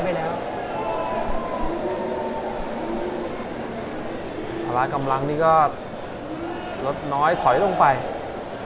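A crowd murmurs and cheers loudly in a large hall.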